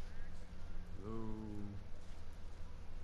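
A man calls out from a distance.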